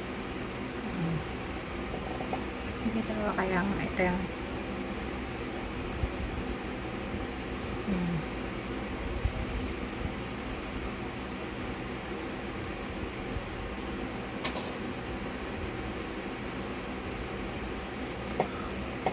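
A woman speaks a few quiet words close by.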